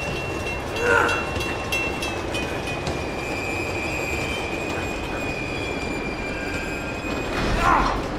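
Footsteps thud on a metal roof.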